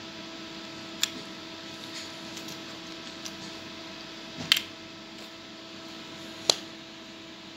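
A plastic case lid clicks open and shut.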